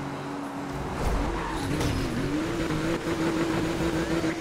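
A car scrapes and crashes against a roadside barrier.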